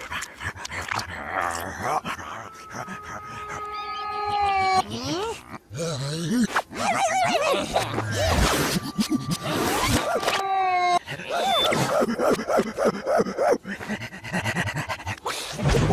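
A cartoon dog pants excitedly.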